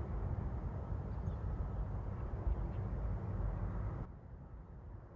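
Wind blows outdoors, rumbling low against the microphone.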